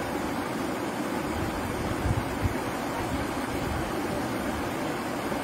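Small waves lap steadily against a shore.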